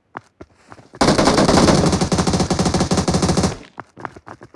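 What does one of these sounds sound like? A rifle fires in a rapid burst close by.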